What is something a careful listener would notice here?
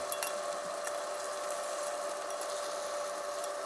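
Wooden chopsticks tap and scrape against a metal omelette pan.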